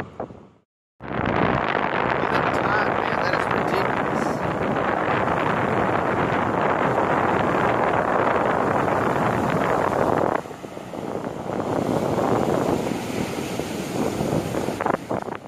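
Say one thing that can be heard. Strong wind blows outdoors.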